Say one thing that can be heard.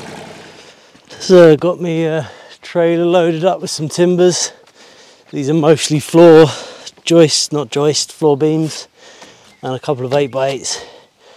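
A man speaks calmly close by outdoors.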